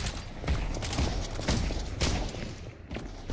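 Gunshots bang sharply in a quick series.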